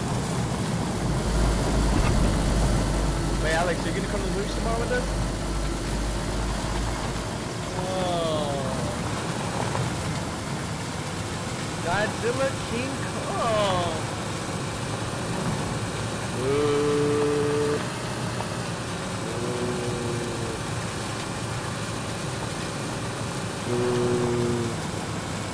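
Tyres crunch over dirt and grass.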